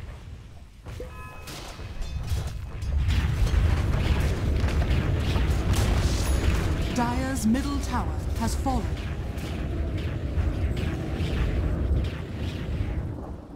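Spell effects and weapon hits clash in a game battle.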